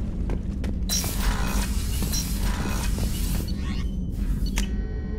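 A heavy sliding door hisses open.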